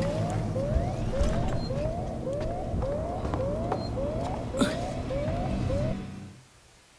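A motion tracker pings again and again with short rising beeps.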